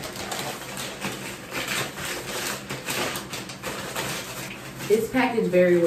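A paper bag crinkles and rustles as it is handled.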